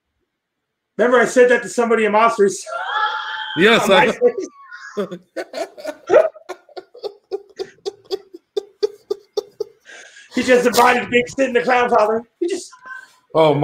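A man laughs loudly over an online call.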